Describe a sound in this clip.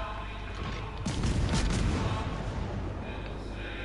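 A distant rumble of naval gunfire and shell blasts rolls across the water.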